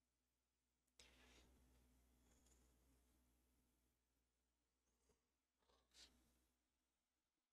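A young man laughs softly into a headset microphone.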